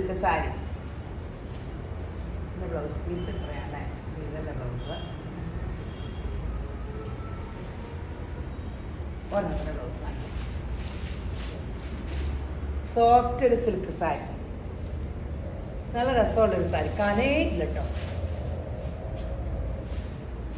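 Cloth rustles as it is unfolded and draped.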